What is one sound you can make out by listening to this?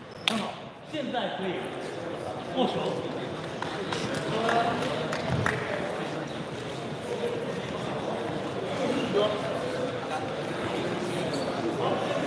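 Young men chatter in the background of an echoing hall.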